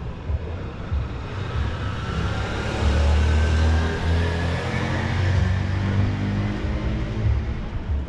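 A motorcycle drives past on the street, its engine rising and fading.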